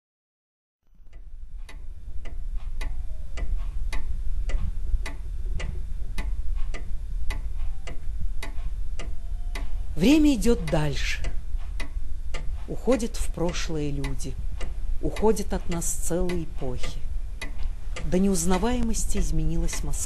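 A wristwatch ticks steadily and close by.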